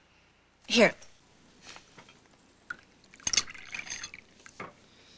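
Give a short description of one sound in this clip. Tea pours from a pot into a cup.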